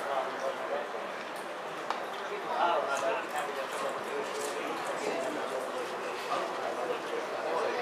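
Several men talk and call out at a distance outdoors.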